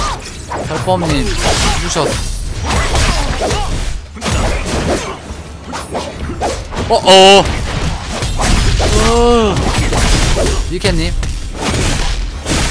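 Sword strikes and magic blasts clash and boom in a video game.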